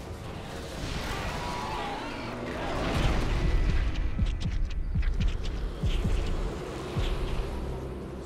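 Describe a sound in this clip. Electric energy crackles and zaps loudly.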